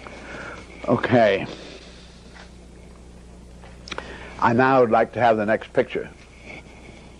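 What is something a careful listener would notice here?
An elderly man speaks slowly and thoughtfully, close by.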